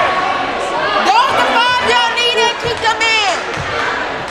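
Sneakers squeak sharply on a hardwood floor.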